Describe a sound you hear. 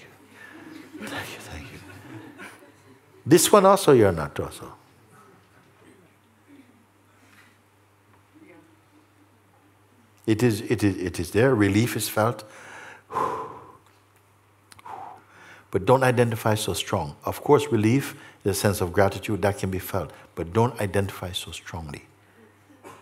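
An older man speaks calmly and thoughtfully, close to a microphone, with pauses.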